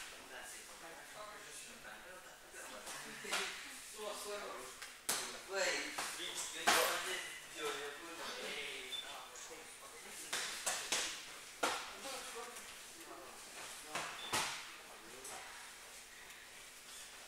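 A man talks in a large echoing hall.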